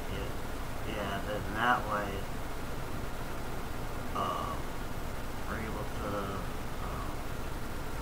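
A man speaks casually into a headset microphone, in short bursts.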